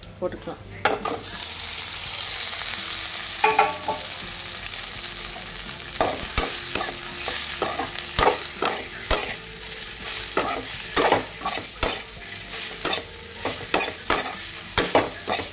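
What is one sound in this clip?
Bread cubes sizzle in hot oil in a pan.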